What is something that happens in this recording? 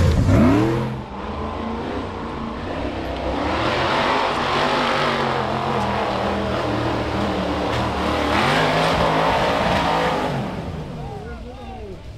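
An off-road vehicle engine revs at a distance as it climbs.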